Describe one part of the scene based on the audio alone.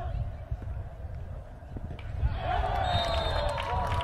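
A hockey stick strikes a ball with a sharp crack.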